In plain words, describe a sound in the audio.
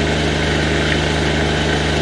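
Water splashes and gurgles through a pipe.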